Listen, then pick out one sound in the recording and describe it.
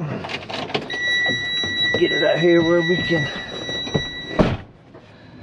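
A truck's door chime beeps steadily.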